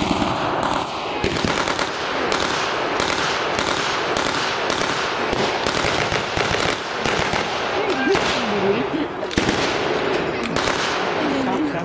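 A machine gun rattles in fast bursts.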